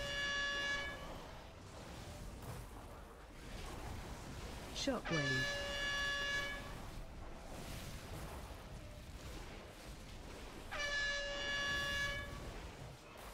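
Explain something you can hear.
A bright chiming tone rings out several times in a game.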